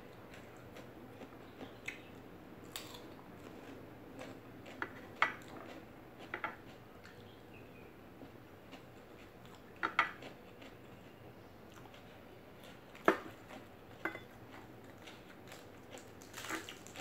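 A woman chews crunchy raw vegetables close to the microphone.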